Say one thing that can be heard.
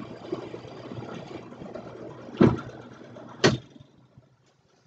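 A drill press whirs as it bores into wood.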